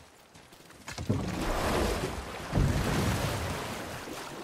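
A wooden boat splashes heavily as it is pushed into the water.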